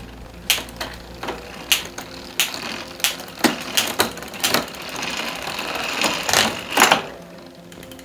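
A bicycle's rear hub clicks rapidly as the wheel turns.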